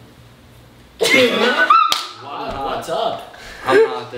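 Young men and women laugh loudly close by.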